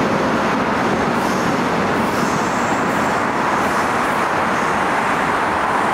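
A passing train clatters close by and then pulls away.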